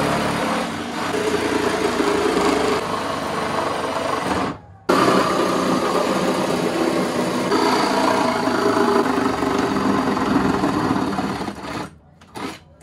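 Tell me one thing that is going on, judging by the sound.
A power tool buzzes loudly, cutting into wood.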